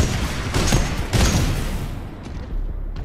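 A heavy gun fires loud blasts with an explosion.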